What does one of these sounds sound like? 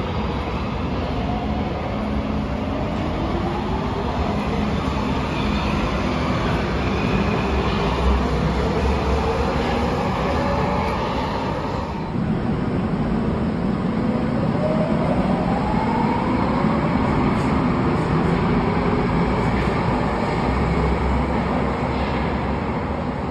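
Train wheels rumble and clatter along the rails.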